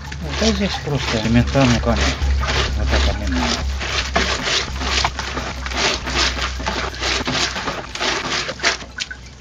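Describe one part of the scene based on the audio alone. Hands squeeze and rustle a wet mass of leaves.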